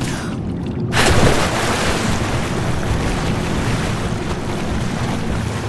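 Water sloshes around a swimmer.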